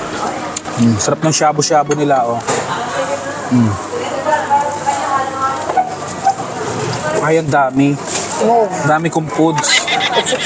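A cup clinks onto a saucer.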